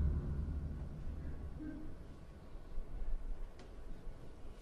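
Dishes and bottles clink on a table.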